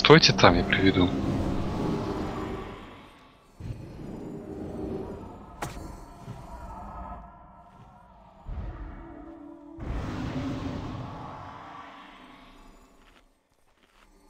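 Game spell effects boom and crackle in bursts.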